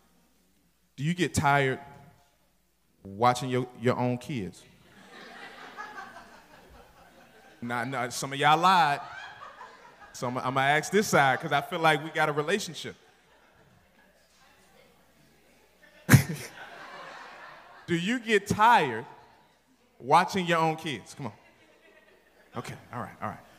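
A man preaches with animation through a microphone in an echoing hall, pausing between phrases.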